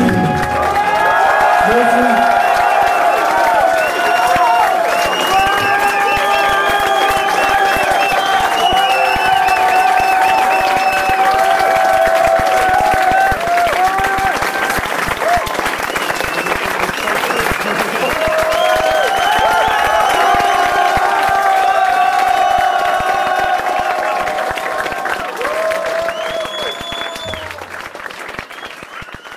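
A rock band plays loudly with electric guitars and drums, fading out at the end.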